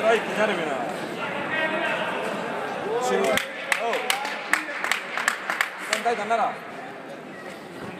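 People chatter nearby in a large echoing hall.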